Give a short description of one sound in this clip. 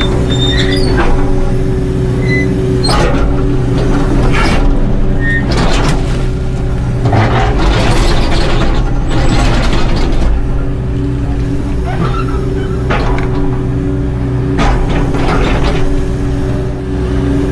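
A diesel excavator engine rumbles steadily up close.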